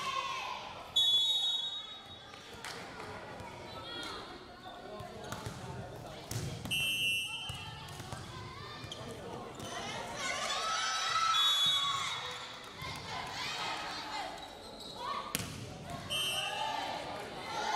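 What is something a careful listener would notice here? A referee's whistle blows in short sharp blasts.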